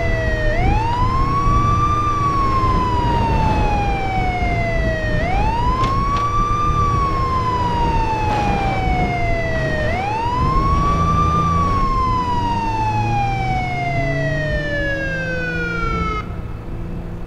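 A police siren wails in slow rising and falling sweeps.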